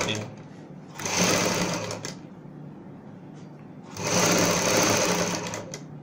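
A sewing machine whirs in short bursts as it stitches fabric.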